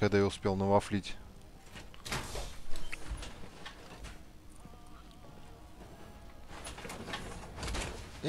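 Heavy metal armour clanks and thuds as it moves.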